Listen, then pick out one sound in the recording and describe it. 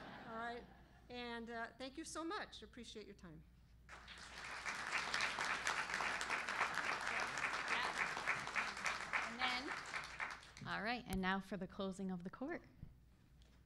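An older woman speaks cheerfully into a microphone.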